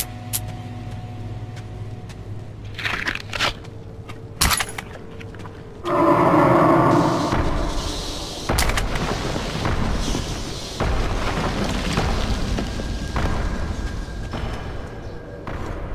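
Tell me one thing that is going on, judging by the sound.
Footsteps crunch on loose gravel and rubble.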